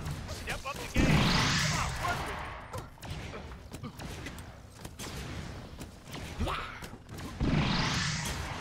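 Explosions boom in loud bursts.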